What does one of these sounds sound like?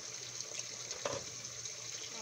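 A metal pot lid clinks.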